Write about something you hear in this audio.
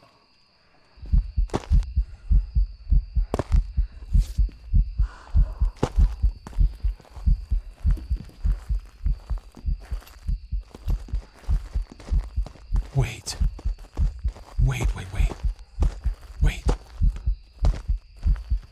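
Quick footsteps thud heavily and steadily.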